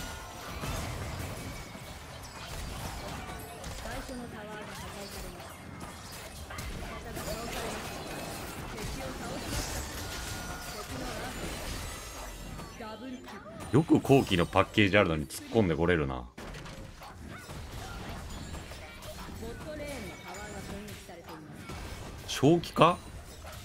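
Video game battle effects clash and whoosh.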